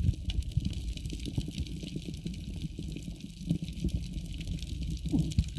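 A muffled underwater rumble goes on, with faint crackling throughout.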